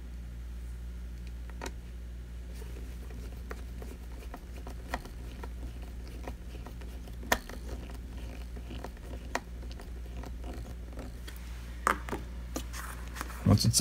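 Small plastic parts click and snap under someone's fingers.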